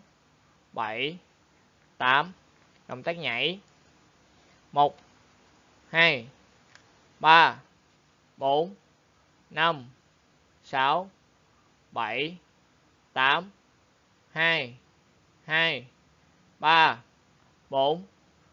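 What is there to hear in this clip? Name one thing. A young man calls out short counts in a steady rhythm, nearby, each call falling in pitch.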